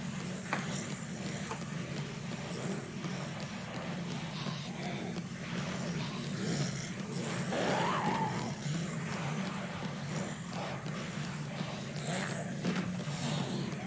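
Footsteps run on a hard floor in a video game.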